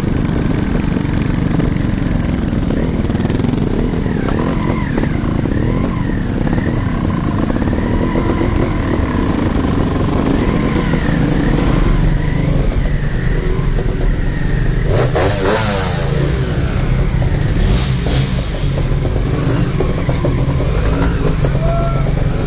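A dirt bike engine idles and revs close by.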